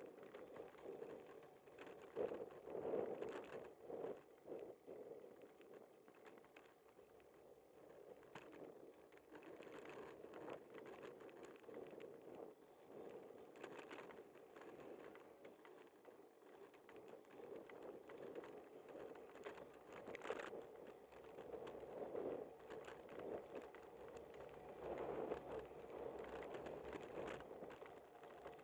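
Wind rushes and buffets past a rider moving along a street.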